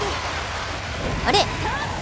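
Flames burst with a loud whoosh.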